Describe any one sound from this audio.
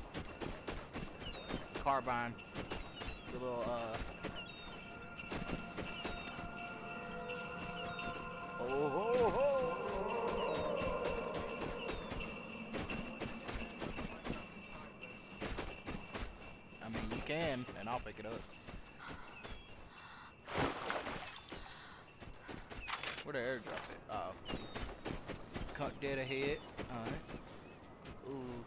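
Footsteps crunch on snow and ice.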